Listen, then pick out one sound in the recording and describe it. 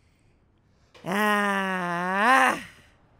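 A man groans loudly and long.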